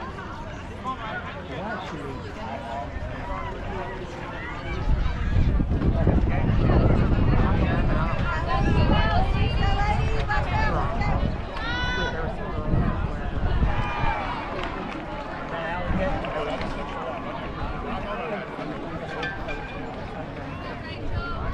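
Young women shout and call out across an open outdoor field.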